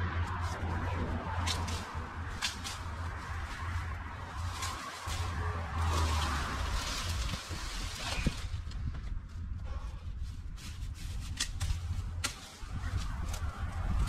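Leafy branches rustle and snap.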